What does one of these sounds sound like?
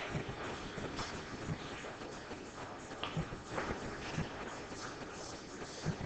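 A ball thuds against a table cushion.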